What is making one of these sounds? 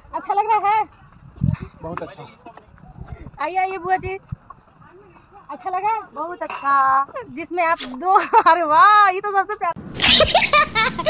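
A young woman talks and laughs close by, with animation.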